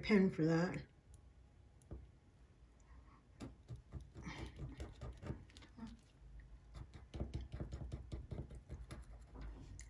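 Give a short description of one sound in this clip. A marker pen scratches softly on paper.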